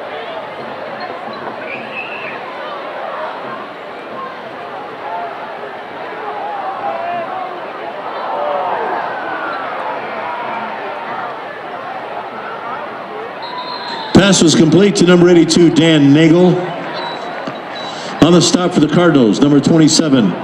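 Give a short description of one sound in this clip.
A crowd murmurs and chatters in an open stadium.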